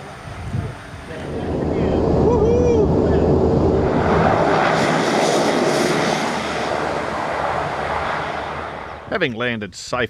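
A plane's engine roars loudly from inside the cabin.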